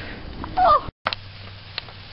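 Sparklers fizz and hiss.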